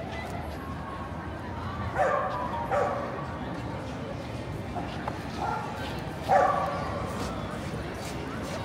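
Men and women chatter in a crowd nearby, outdoors.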